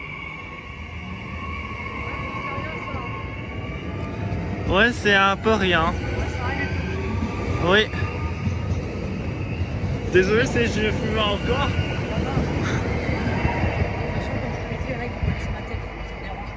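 A train hums and rumbles close by.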